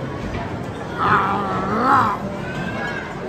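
A man groans with pleasure while eating.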